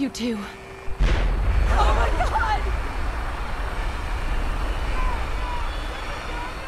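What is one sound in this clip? A huge explosion booms and rumbles deeply.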